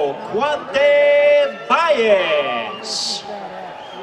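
An elderly man announces loudly and with drawn-out emphasis through a microphone over loudspeakers.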